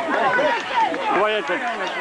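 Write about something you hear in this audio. Hurley sticks clack together.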